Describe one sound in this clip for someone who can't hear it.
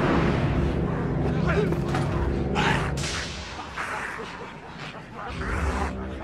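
A man growls and snarls.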